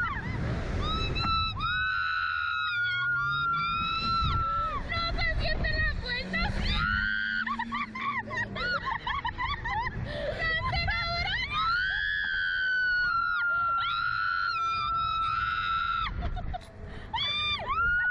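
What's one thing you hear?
Two young women scream loudly and at length, close by.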